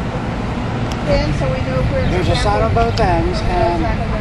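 Men talk to each other outdoors.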